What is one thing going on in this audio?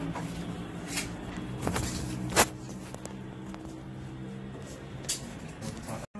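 Wooden panels knock and bump as they are fitted into place.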